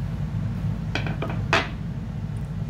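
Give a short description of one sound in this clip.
A plastic container clicks and taps as a hand handles it.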